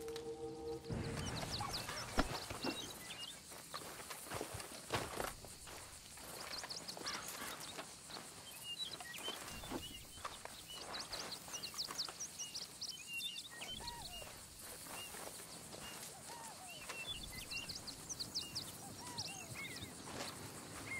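Cloth and leather rustle as belongings are rummaged through.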